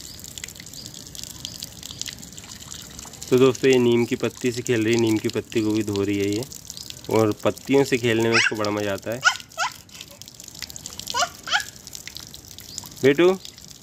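Water trickles and splashes steadily onto stone.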